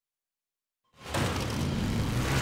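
An off-road buggy engine roars as it drives along a dirt track.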